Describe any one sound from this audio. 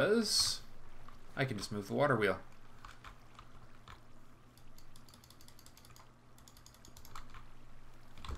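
Water splashes and trickles steadily.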